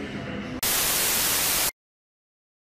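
Static hisses loudly from an old television.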